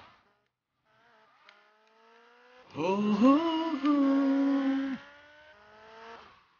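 A motorbike engine revs up and down as it rides.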